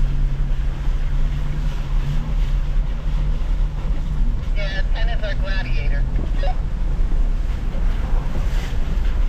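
A vehicle engine rumbles steadily at low speed.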